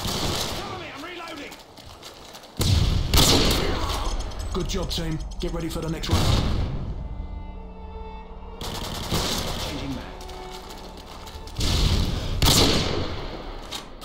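A sniper rifle fires a loud, booming shot.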